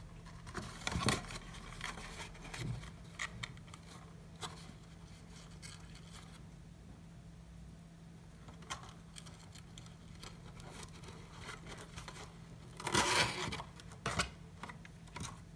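Stiff paper rustles and crinkles as hands fold it.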